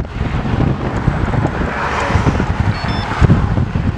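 A car passes close by with a rushing swell.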